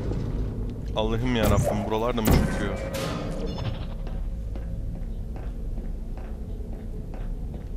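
A device fires with a sharp electronic zap.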